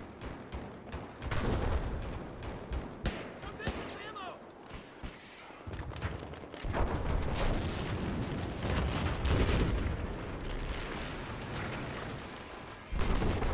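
Gunfire cracks in rapid bursts nearby.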